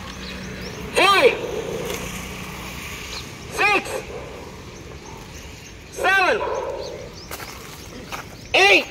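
A man shouts short counts loudly outdoors.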